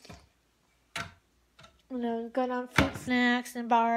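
A wooden cabinet door knocks shut.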